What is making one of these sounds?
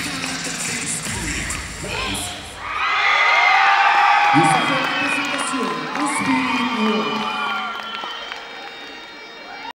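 A group of young women shouts and cheers in a large echoing hall.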